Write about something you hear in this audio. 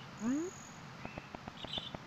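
Quick footsteps patter on sandy ground.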